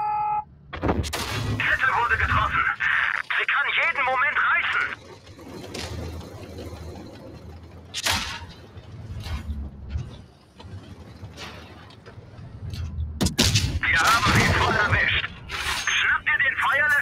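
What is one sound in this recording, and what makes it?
A tank cannon fires with a loud, sharp boom.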